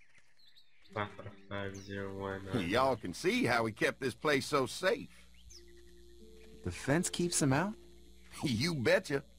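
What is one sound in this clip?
Another man answers in a calm voice.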